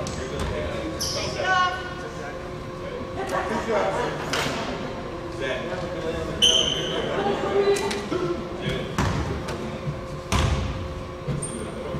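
Basketball shoes squeak on a hardwood court in a large echoing gym.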